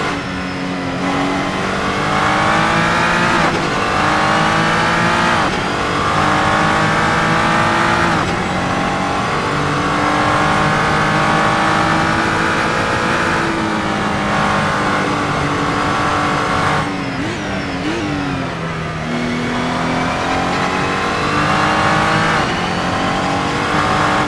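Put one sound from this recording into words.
A racing car engine roars, climbing in pitch through the gears with sharp drops at each shift.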